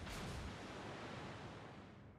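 Shells splash into water with rumbling bursts.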